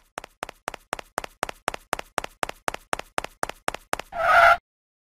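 Quick, light cartoon footsteps patter along.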